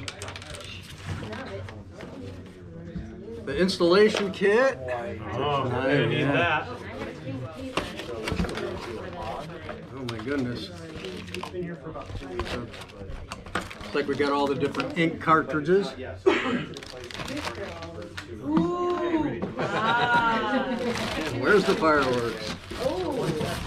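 Cardboard and plastic packaging rustle and crinkle.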